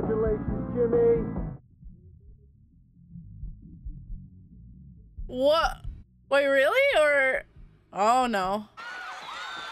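A young woman exclaims and talks with animation into a close microphone.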